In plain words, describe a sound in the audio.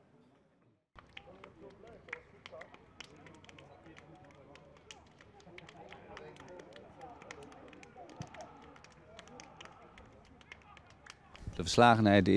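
Players slap hands as they pass one another.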